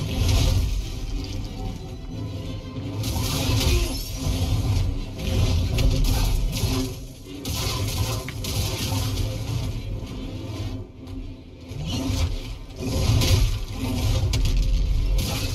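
Lightsabers hum and swish through the air.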